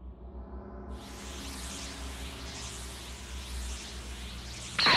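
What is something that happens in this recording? Magical energy crackles and hisses.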